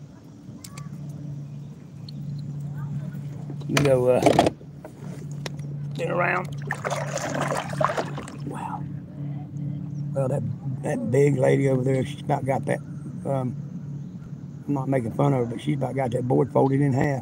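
Water laps gently against a small boat's hull.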